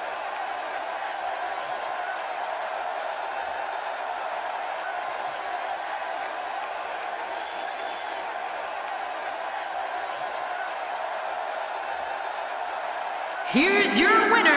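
A large crowd roars steadily in a big echoing arena.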